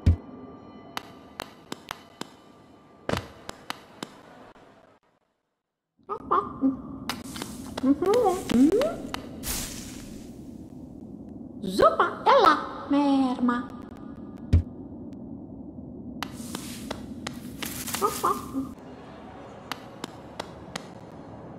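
Light footsteps tap quickly on a hard floor.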